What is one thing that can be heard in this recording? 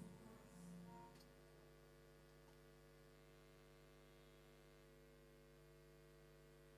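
A choir sings a long, steady held chord.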